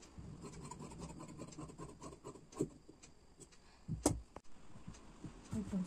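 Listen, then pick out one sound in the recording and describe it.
Scissors snip through fabric.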